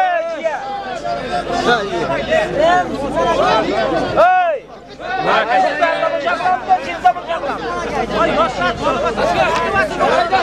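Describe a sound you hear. A large crowd of men talks and shouts all around, close by.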